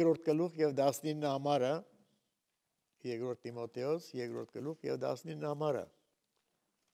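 An elderly man reads aloud calmly through a microphone in a large room.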